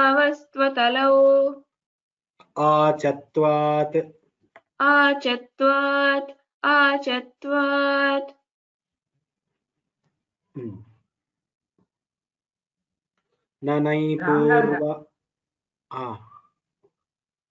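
A woman chants verses in a steady sing-song through an online call.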